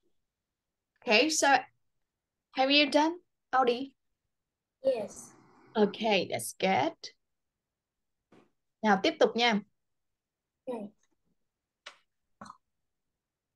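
A young woman speaks calmly into a microphone, pausing between phrases.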